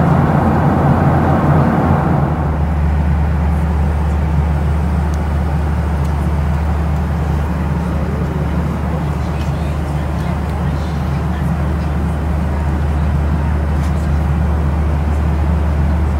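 A jet engine roars steadily inside an airliner cabin.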